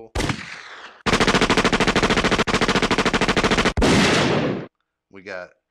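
A young man laughs loudly into a microphone.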